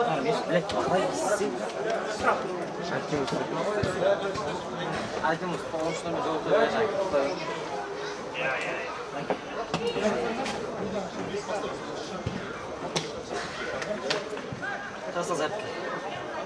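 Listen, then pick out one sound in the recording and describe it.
A crowd of men talk and call out nearby, outdoors.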